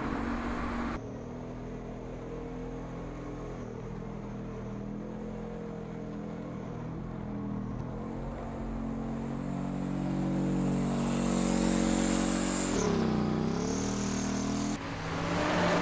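A tank engine rumbles and clanks nearby.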